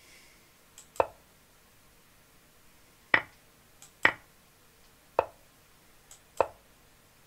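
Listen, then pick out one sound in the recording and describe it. An online chess board plays short click sounds as pieces move.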